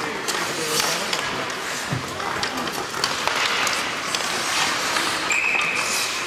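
Ice skates scrape and carve across the ice as players rush.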